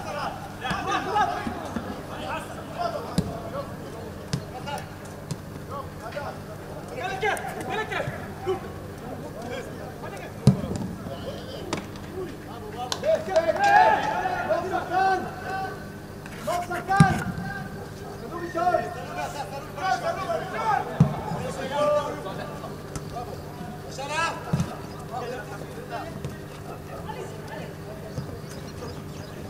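Men shout to each other at a distance outdoors.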